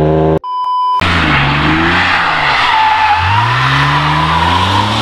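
A car engine revs up and down quickly.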